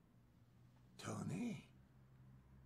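A middle-aged man mutters a few words quietly close by.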